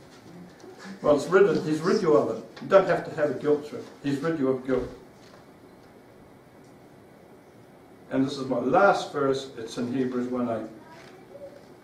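An older man speaks calmly, reading aloud.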